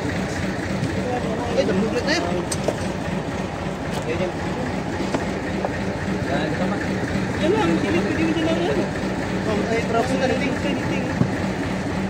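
A man talks nearby.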